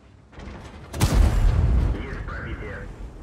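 A tank cannon fires with a loud, sudden boom.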